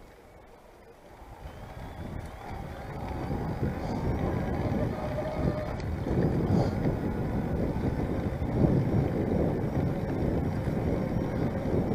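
Wind rushes and rumbles past, growing stronger.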